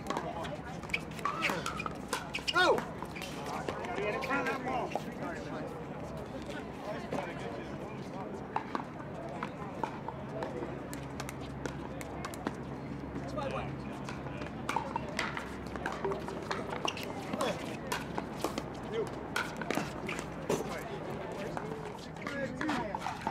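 Paddles pop against a plastic ball in quick rallies.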